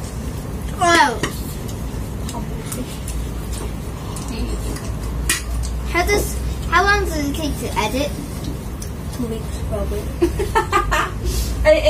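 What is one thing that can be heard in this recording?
Young children talk and call out in high voices nearby.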